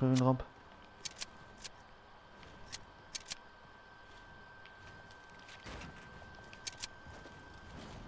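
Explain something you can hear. Building pieces snap into place with short, sharp clicks.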